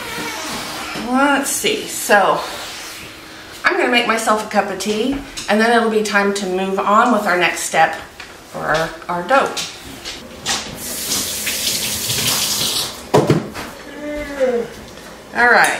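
A middle-aged woman talks calmly and close by.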